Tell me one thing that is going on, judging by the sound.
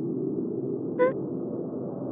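A short electronic chime sounds as a text box opens.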